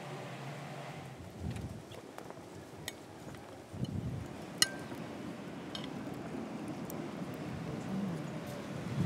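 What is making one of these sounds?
A fork and knife clink on a plate.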